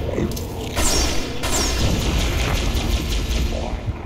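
A plasma weapon fires with sharp electronic zaps.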